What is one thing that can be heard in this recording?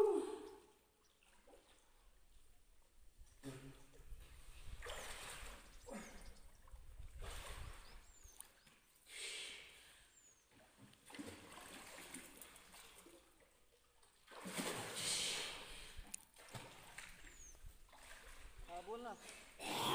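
Water splashes and laps as people swim.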